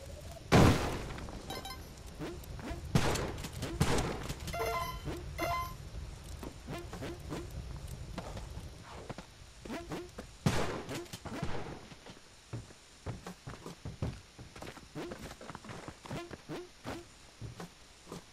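Short game sound effects blip and chime.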